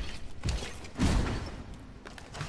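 A sword strikes armour with a heavy clang.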